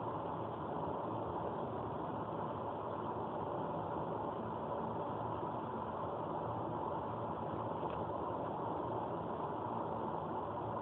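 A car's engine hums steadily from inside the car.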